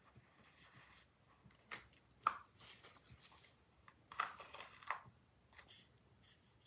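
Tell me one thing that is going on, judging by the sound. A small glass jar clicks and taps.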